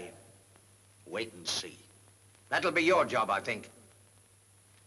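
A younger man answers sharply, close by.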